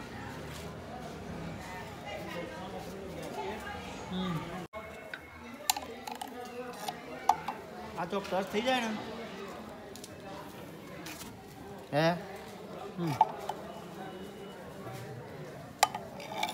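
Hands handle wires and metal parts with light clicks and rattles.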